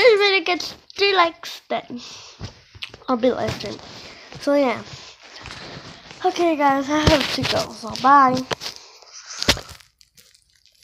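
A young girl talks playfully and close up.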